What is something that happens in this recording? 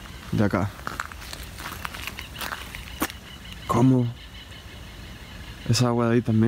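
Footsteps crunch on wet gravel.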